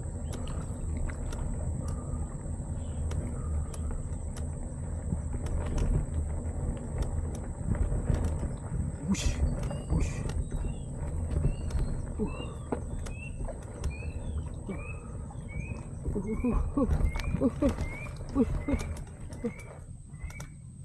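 Bicycle tyres crunch over a dirt path.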